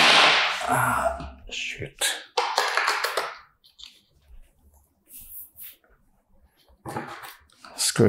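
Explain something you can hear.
Hard plastic parts rattle and scrape as they are handled up close.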